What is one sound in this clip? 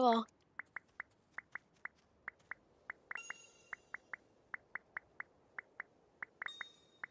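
Quick, bright pops sound again and again as items are collected.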